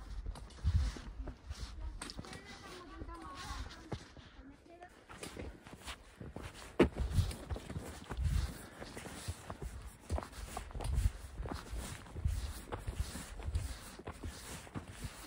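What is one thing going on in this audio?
Footsteps crunch on snow and gravel at a steady walking pace.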